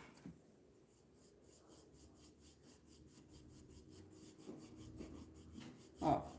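A paintbrush scrapes softly across a plastic palette.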